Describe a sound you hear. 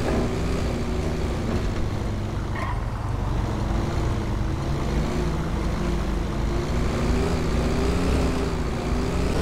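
A bus engine rumbles steadily as the bus drives and turns.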